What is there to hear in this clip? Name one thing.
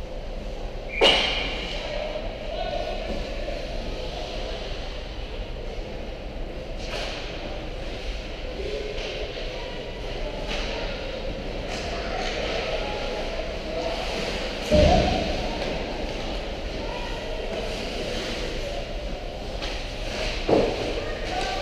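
Hockey sticks clack and a puck knocks against the boards.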